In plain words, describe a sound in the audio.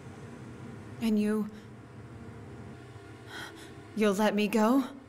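A young woman speaks softly and tensely, close by.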